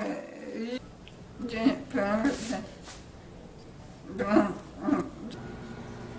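A middle-aged woman speaks with animation close by.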